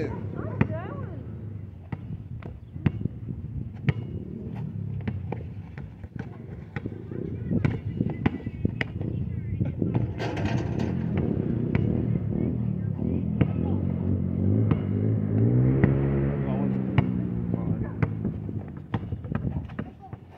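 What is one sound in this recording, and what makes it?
A basketball bounces sharply on asphalt outdoors.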